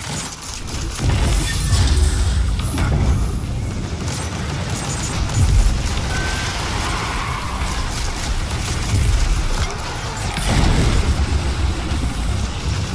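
Weapon blasts and energy bursts boom and crackle in a game battle.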